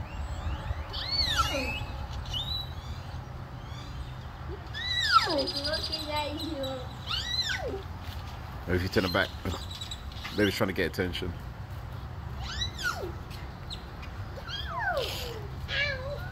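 A cockatoo gives loud, sliding whistles that rise and fall in pitch.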